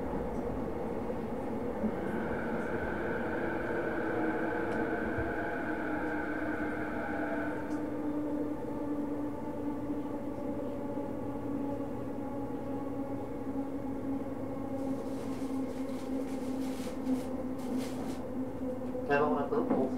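An electric train motor whines steadily, its pitch slowly shifting.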